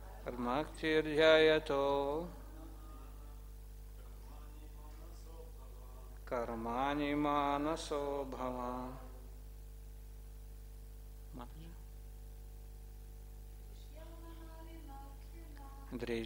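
A middle-aged man reads aloud slowly into a microphone, in pauses.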